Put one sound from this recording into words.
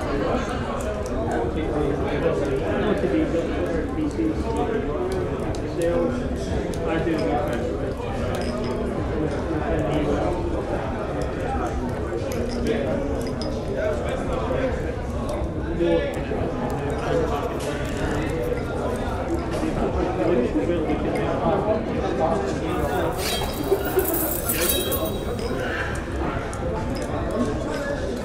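A crowd of men and women chatter and laugh in a busy, echoing room.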